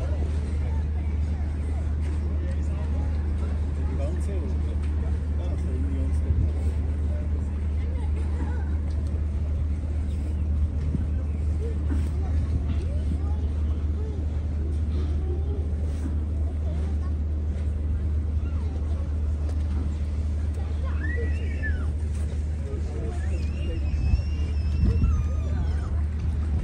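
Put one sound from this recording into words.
Choppy water splashes against a moored boat's hull.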